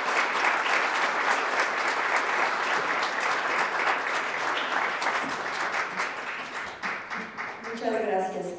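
An audience applauds in a large hall and the clapping slowly fades.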